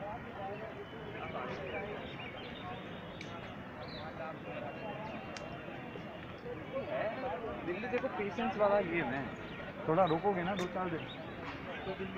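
A crowd of men and women chatters and talks nearby outdoors.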